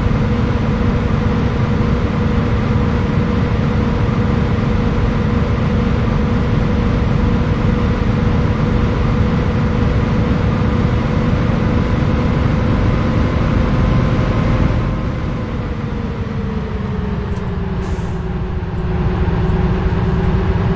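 A bus engine hums steadily and its pitch drops as the bus slows down.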